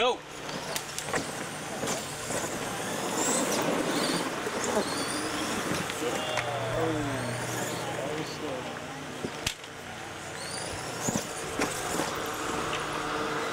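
Tyres of toy trucks crunch and scatter gravel.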